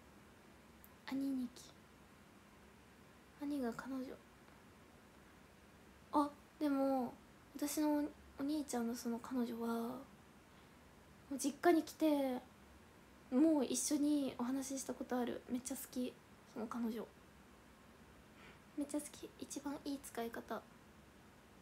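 A young woman speaks calmly and in short bursts, close to a microphone.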